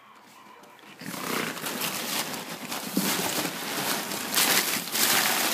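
A hand rubs and pats a dog's fur close up.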